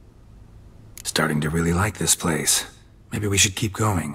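A deep-voiced man speaks wryly and calmly.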